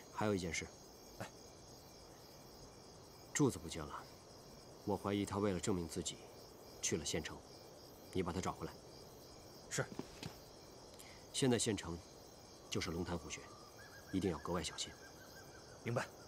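A man speaks in a low, serious voice close by.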